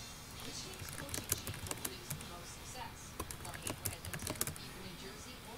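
Keys on a keyboard click rapidly as someone types.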